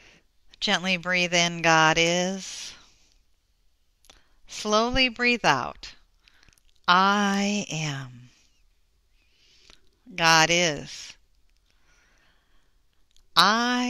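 A woman speaks calmly and slowly through a headset microphone, with pauses between phrases.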